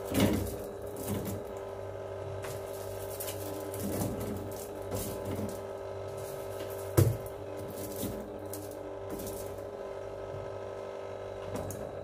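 Cans and bottles clink as they are placed on a shelf.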